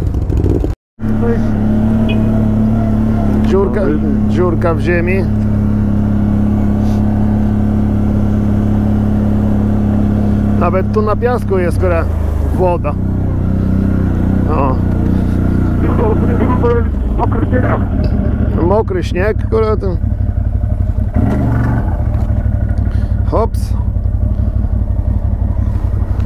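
A quad bike engine drones steadily as it drives along a bumpy track.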